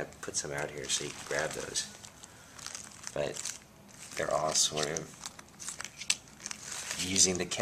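Playing cards flick and slide against each other as they are spread out.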